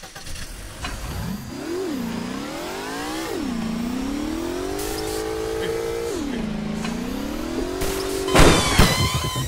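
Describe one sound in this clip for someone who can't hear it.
A bus engine revs up and down through the gears.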